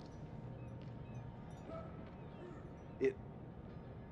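A small plastic game piece clicks as it is picked up from a wooden table.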